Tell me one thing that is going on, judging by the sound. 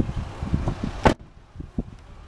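A car door shuts with a solid thud.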